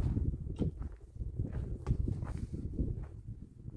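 A broom sweeps and scrapes over dry dirt ground.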